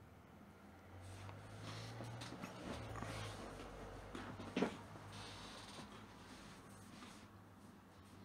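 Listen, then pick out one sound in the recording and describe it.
A man shifts in a chair, rustling and creaking close by.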